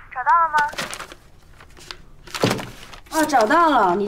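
Paper pages rustle as they are leafed through.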